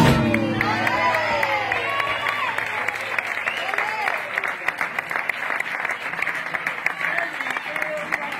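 Audience members clap their hands in rhythm.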